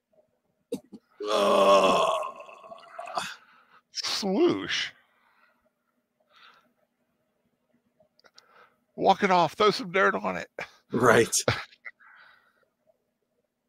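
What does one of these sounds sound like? A man speaks with animation through a microphone on an online call, pausing between phrases.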